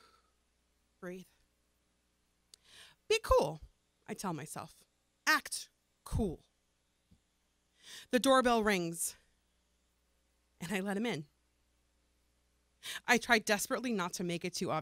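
A woman speaks expressively into a microphone, with pauses between phrases.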